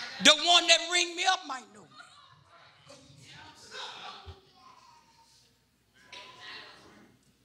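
A man preaches loudly and with animation into a microphone in a large echoing hall.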